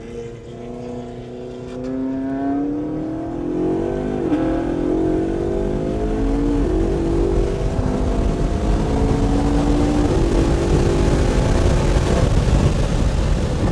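A car engine roars loudly, rising in pitch as it speeds up and drops briefly at each gear change.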